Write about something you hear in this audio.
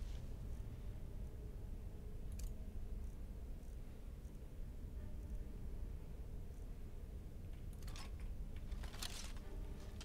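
A flame crackles softly.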